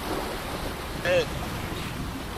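A sea lion gives a short bark.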